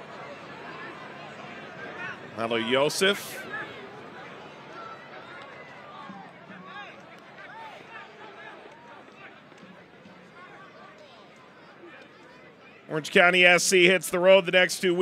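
A crowd murmurs and chatters in an outdoor stadium.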